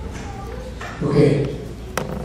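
An elderly man speaks into a handheld microphone.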